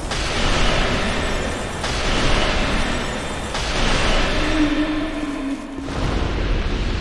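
Magic bursts crackle and roar in loud rushes.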